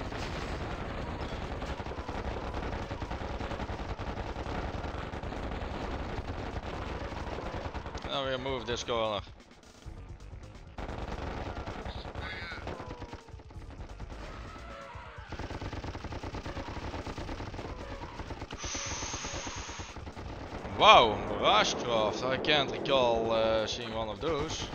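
Game explosions boom during a battle.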